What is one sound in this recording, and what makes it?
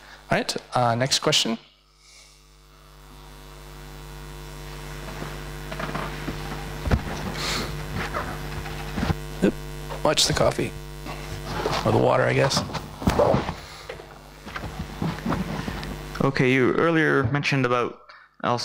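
A man speaks calmly into a microphone over loudspeakers in a large echoing hall.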